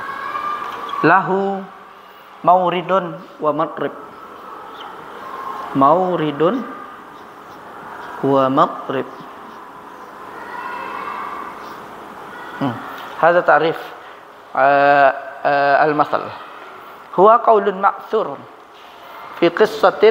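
A man speaks calmly, explaining slowly, close by.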